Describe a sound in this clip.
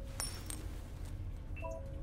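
A coin flicks and clicks between fingers.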